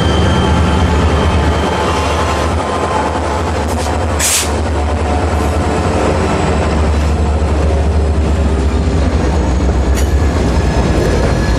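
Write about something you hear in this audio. Freight train wheels clatter and squeal on the rails.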